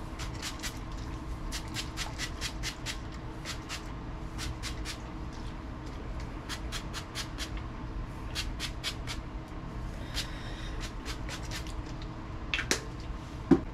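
A spray bottle hisses in short repeated bursts.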